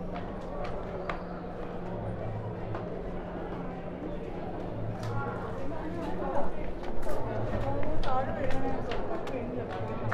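Footsteps scuff on stone paving.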